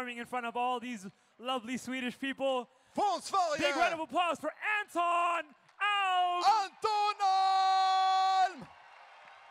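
A young man makes rhythmic vocal sounds loudly into a microphone.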